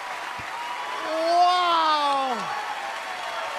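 A boy sings a long note into a microphone.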